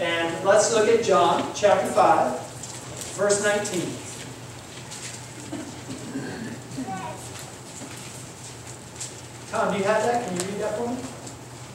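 A man speaks with animation through a microphone in a room with a slight echo.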